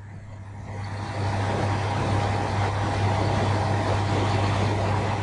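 A rice milling machine hums and whirs steadily.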